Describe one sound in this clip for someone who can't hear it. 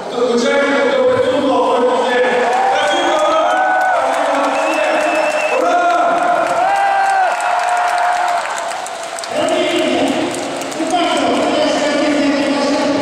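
A man sings into a microphone, heard through loudspeakers in a large echoing arena.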